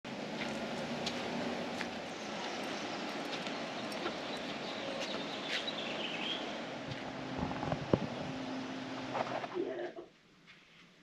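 Street noise hums steadily outdoors.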